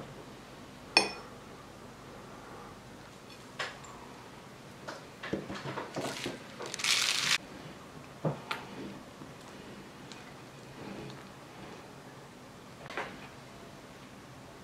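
A glass clinks against a plate.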